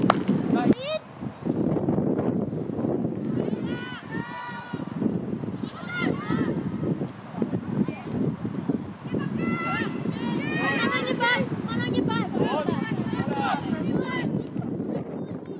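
Young women call out to each other across an open field, heard from a distance.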